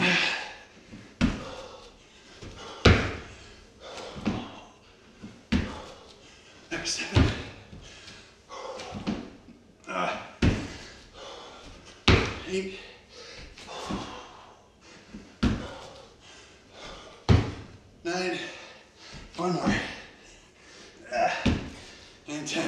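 A man breathes hard and puffs.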